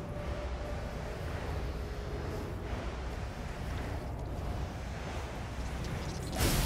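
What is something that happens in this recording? A jetpack roars steadily.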